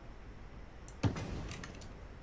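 A short click sounds once.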